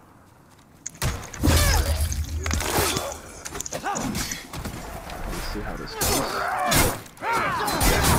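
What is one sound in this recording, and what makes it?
Blades clash and strike loudly in a fight.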